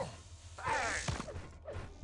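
A game weapon fires with a sharp electric zap.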